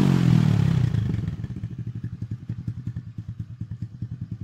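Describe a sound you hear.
A motorcycle engine idles with a steady, rapid putter.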